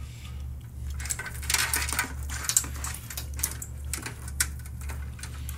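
Braided cables rustle and scrape as a hand moves them.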